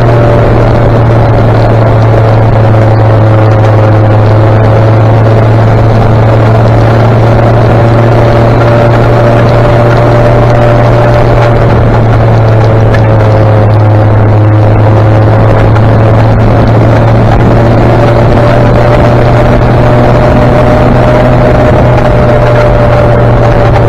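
A vehicle engine drones steadily up close.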